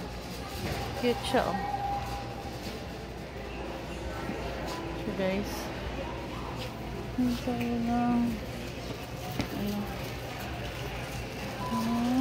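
A shopping cart rolls along with a faint rattle.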